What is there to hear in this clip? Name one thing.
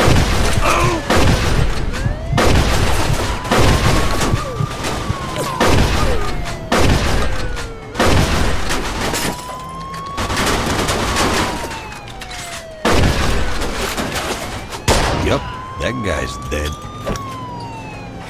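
Gunshots fire in sharp, loud bursts.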